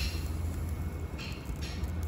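Broth pours from a ladle into a bowl.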